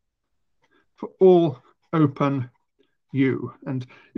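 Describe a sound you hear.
A middle-aged man speaks calmly through a microphone on an online call.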